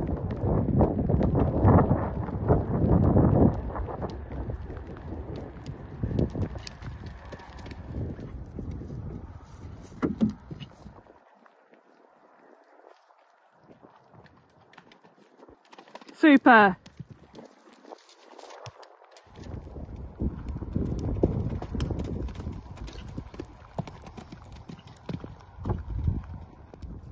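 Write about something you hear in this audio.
A horse gallops with dull hoof thuds on grass.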